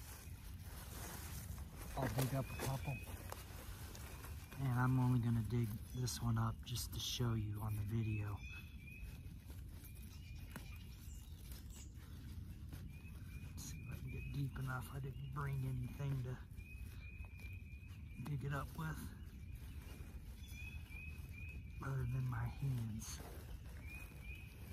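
Leaves rustle and stems snap as plants are picked by hand.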